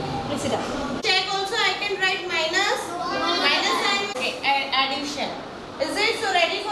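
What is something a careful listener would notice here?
A woman speaks with animation to a class.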